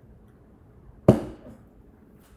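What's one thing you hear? A metal mug knocks down onto a wooden table.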